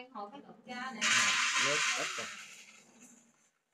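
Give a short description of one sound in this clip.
Hands rustle and toss dry noodles in a metal pot.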